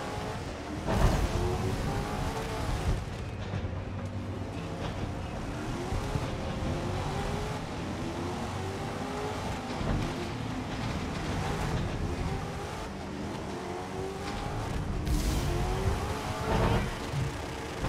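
Race cars crash into each other with a metallic bang.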